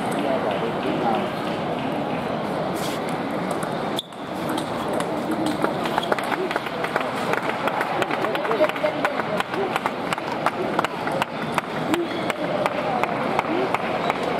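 Table tennis balls click and bounce on tables and bats throughout a large echoing hall.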